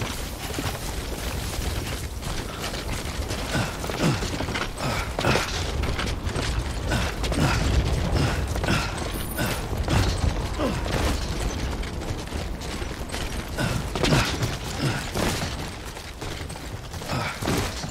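A heavy load creaks and rattles on a walker's back.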